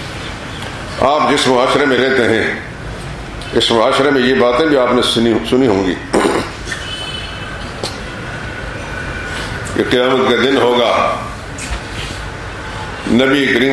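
A middle-aged man speaks slowly and earnestly into a microphone, with pauses.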